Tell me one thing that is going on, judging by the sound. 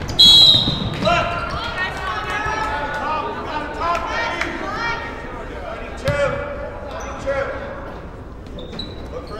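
Young women call out to each other across an echoing gym.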